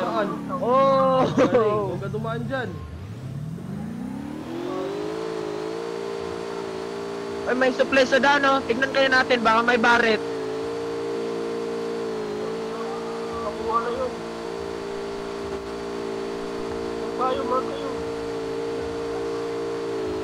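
A vehicle engine revs and then drones steadily.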